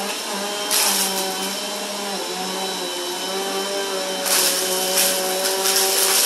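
A vacuum cleaner motor whirs steadily with a high whine.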